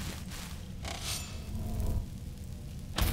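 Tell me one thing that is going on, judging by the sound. A magic spell crackles and whooshes as it is cast.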